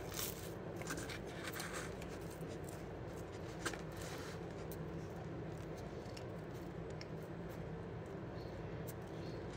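A boy chews food with his mouth closed, close by.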